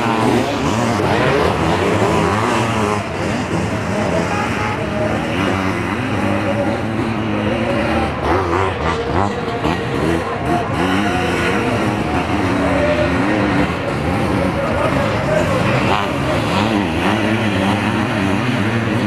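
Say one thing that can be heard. Several motocross sidecar outfits rev their engines hard.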